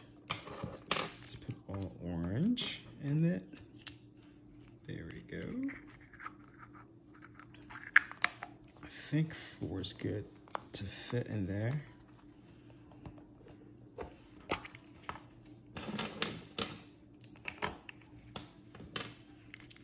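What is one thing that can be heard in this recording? Wrapped candies clatter and rustle as they are dropped into a plastic egg.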